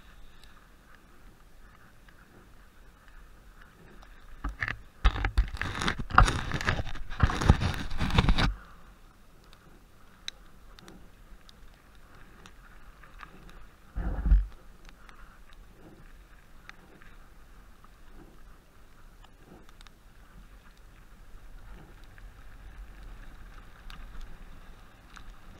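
A bike rattles and clicks over bumps on the trail.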